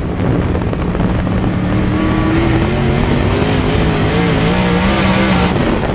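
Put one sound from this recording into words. A race car engine roars loudly at high revs, rising and falling in pitch.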